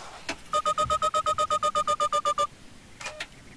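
A rapid electronic beeping sounds.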